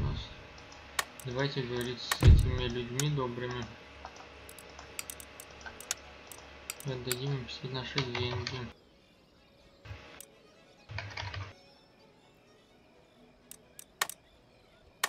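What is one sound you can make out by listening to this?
Game menu buttons click sharply.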